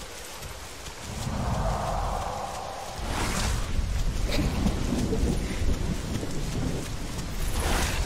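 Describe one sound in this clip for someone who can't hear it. Heavy footsteps thud on grass as a large creature runs.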